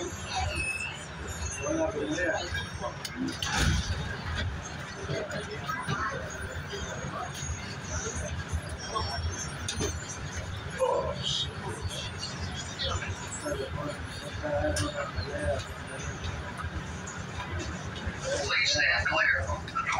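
Passengers talk in the distance.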